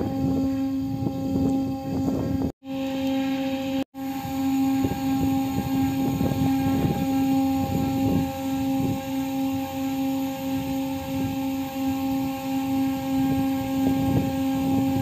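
Hydraulic machinery hums steadily.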